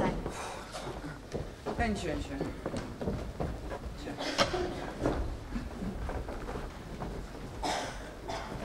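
A woman speaks with animation, heard from a distance in a large hall.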